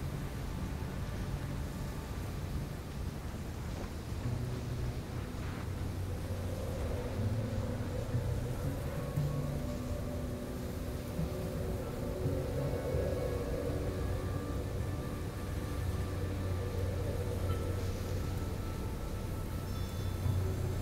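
Wind howls steadily, blowing sand.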